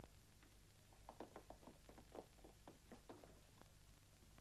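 Footsteps tap softly on stairs.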